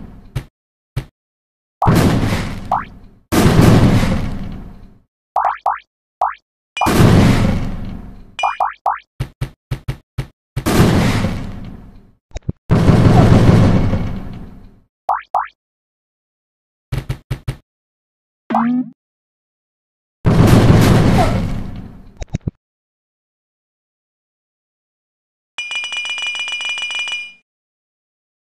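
Short game sound effects chime and blip.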